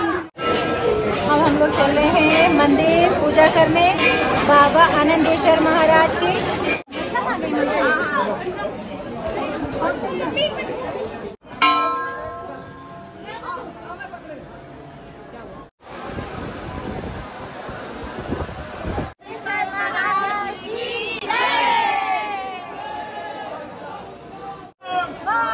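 A woman talks cheerfully close by.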